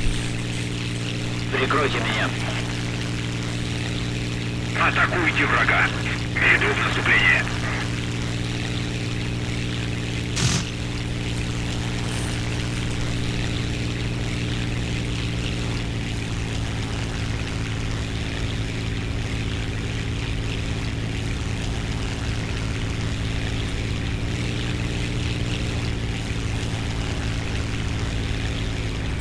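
A propeller engine drones steadily throughout.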